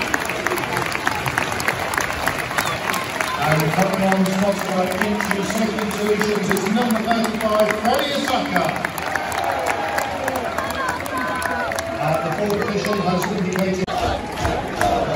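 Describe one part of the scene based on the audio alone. Spectators clap and shout.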